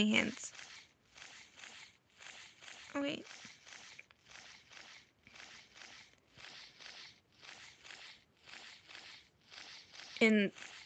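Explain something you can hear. Large wings flap in a steady rhythm.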